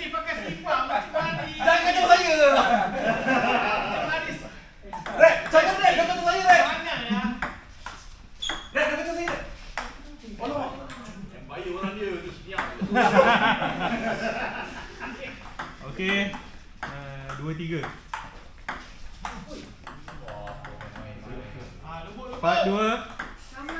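Men talk and laugh loudly nearby in an echoing room.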